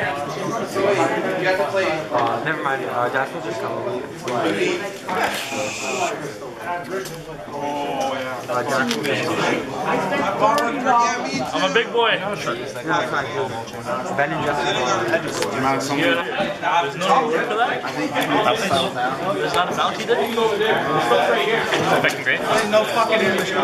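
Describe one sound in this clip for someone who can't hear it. Playing cards slap and slide on a mat.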